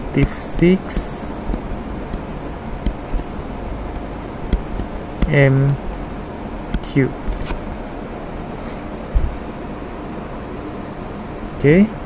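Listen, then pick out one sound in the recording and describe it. A man speaks calmly in short phrases through a microphone.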